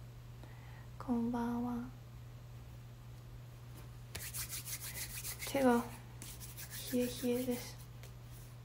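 A young woman speaks softly and close to the microphone, in short bursts.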